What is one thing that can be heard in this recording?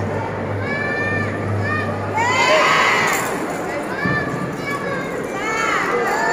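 A marching band plays a lively tune in a large echoing hall.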